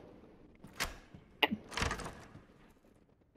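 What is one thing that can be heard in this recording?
A heavy wooden door swings open.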